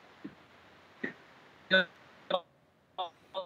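A man speaks briefly into a microphone.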